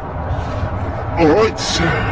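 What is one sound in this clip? A man speaks close by, outdoors in wind.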